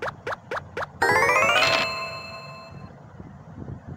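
A bright rising chime jingle plays.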